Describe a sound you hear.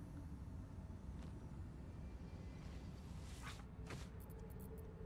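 A blade swishes quickly through the air.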